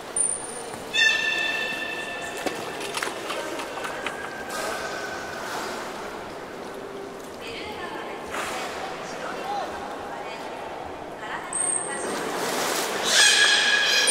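A beluga whale whistles and squeals in high tones.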